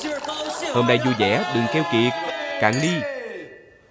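Glasses clink together.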